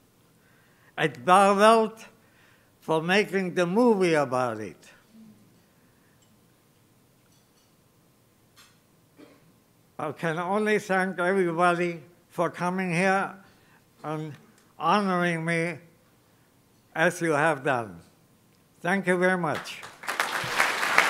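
An elderly man speaks slowly and deliberately into a microphone, heard through a loudspeaker in a large hall, with long pauses.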